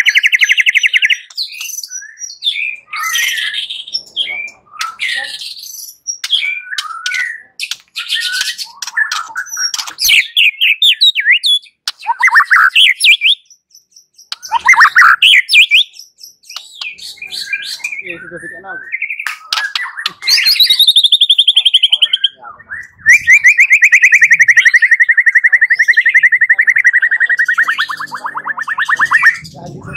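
A songbird sings loud, varied whistles and trills close by.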